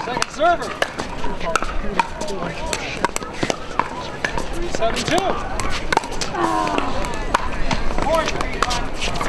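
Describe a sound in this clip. Paddles pop sharply against plastic balls, over and over.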